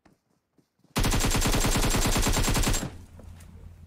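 Rapid automatic gunfire rattles in a long burst.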